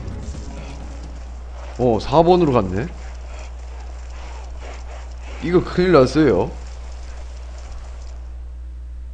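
Footsteps patter quickly over leafy ground.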